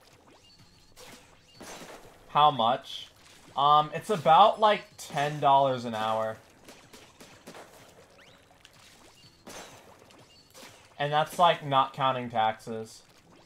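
Ink sprays and splats in short bursts.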